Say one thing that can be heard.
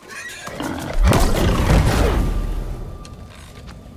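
A fiery explosion bursts with a loud roaring boom.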